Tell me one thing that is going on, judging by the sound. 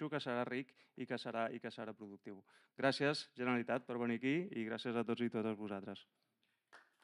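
A middle-aged man speaks with animation through a microphone in an echoing room.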